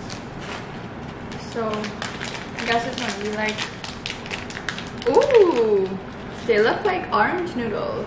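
A snack bag crinkles and rustles.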